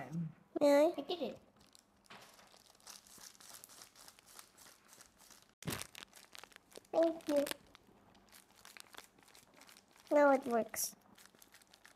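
A young girl speaks close to a microphone.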